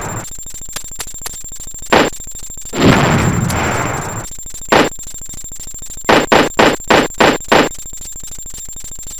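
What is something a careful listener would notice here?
A helicopter's rotor chops steadily.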